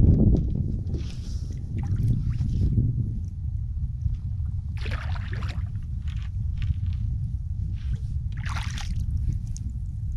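Water splashes and swishes as a pole pushes a boat along.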